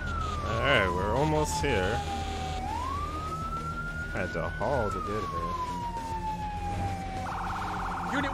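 A siren wails, rising and falling slowly.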